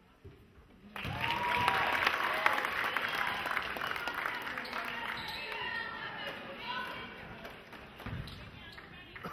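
A crowd cheers and claps loudly in an echoing gym.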